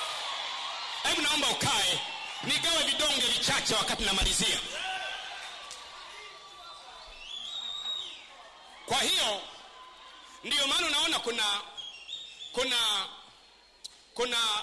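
A man preaches loudly and with animation through a microphone in a large echoing hall.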